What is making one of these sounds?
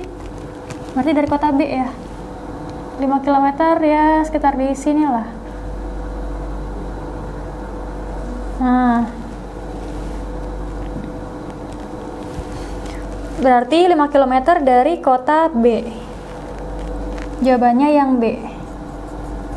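A young woman speaks calmly, explaining at a steady pace.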